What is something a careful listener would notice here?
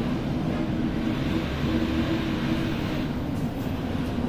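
A bus passes close by.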